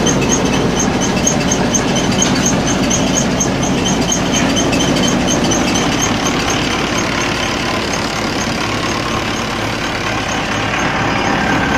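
A threshing machine rumbles and rattles loudly nearby.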